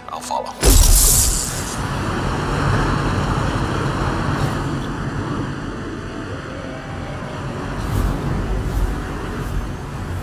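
Wind rushes steadily past during a fast dive.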